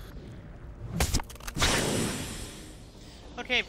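A large fleshy pod bursts open with a wet, tearing squelch.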